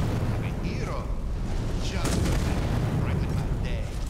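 A man speaks gruffly nearby.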